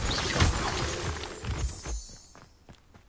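A magic spell bursts with a loud crackling whoosh.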